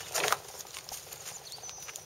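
Small wheels roll and rattle along a wooden board.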